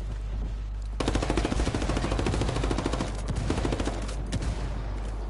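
A rifle fires rapid bursts of shots nearby.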